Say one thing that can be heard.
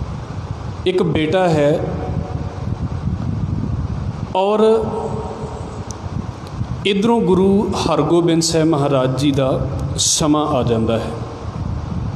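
A young man sings slowly through a microphone, in drawn-out phrases.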